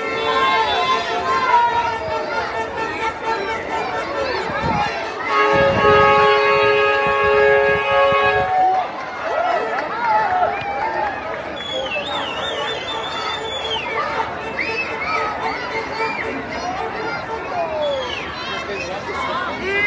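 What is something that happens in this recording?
A large crowd of men and women chatters and calls out nearby outdoors.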